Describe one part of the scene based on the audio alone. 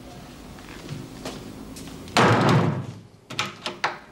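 A door closes with a thud.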